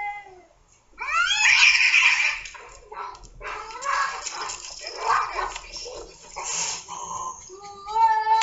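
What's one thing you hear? Cats hiss and screech as they fight.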